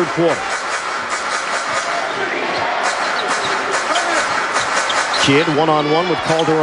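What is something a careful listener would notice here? A large crowd murmurs steadily in an echoing arena.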